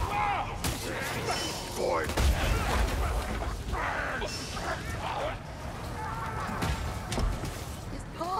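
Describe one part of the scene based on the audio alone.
A heavy blade swings and strikes with sharp thuds.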